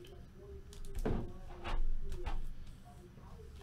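Plastic card cases clack and tap on a table.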